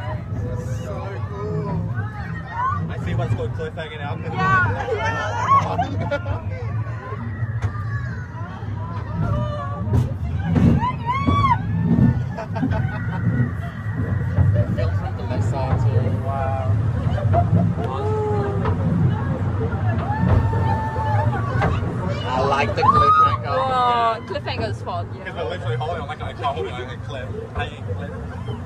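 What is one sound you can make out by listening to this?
A crowd of passengers cheers and shouts excitedly close by.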